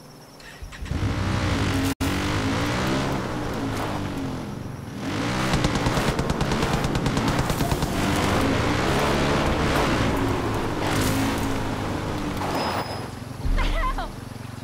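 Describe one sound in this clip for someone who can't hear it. A quad bike engine revs loudly as the bike drives over rough ground.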